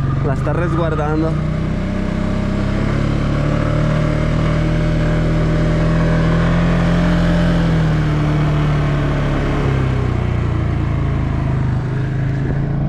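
Tyres crunch over a dirt track.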